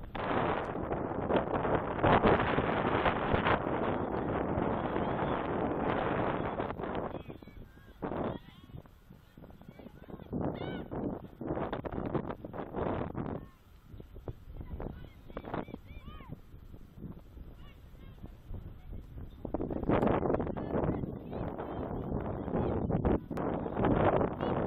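Wind gusts roughly against the microphone outdoors.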